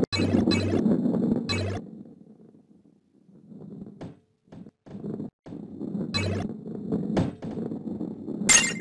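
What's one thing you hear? A heavy ball rolls and rumbles along a wooden track.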